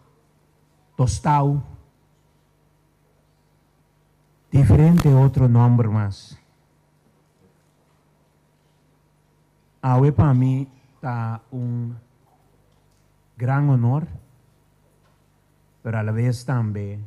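A middle-aged man speaks slowly and solemnly through a microphone, with long pauses between phrases.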